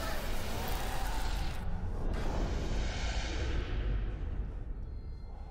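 A deep rushing whoosh roars and then fades.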